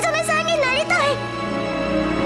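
A young girl speaks pleadingly, close by.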